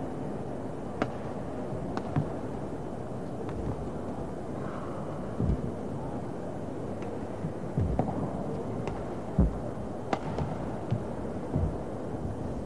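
A shuttlecock is struck sharply back and forth with rackets.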